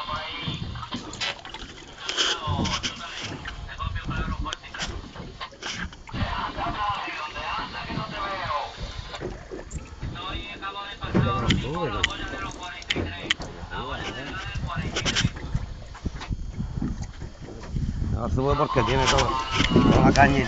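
Water laps and splashes against the side of a boat.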